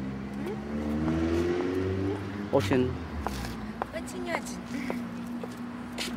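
A young woman laughs close by.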